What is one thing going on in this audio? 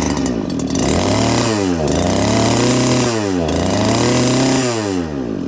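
A small petrol engine revs up and down repeatedly.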